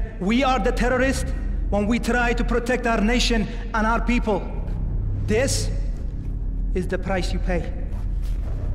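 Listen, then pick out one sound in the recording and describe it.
A man speaks forcefully and menacingly, close by, in a large echoing room.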